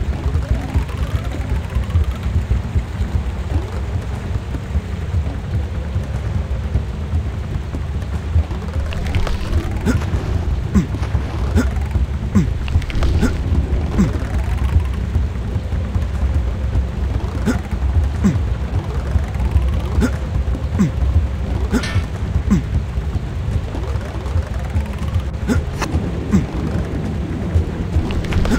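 Rushing water roars steadily.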